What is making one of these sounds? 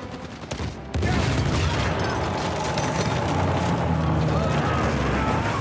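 Timber cracks and crashes as a ship's hull breaks apart.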